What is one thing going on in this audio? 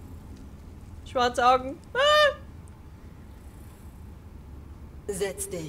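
A young woman answers softly.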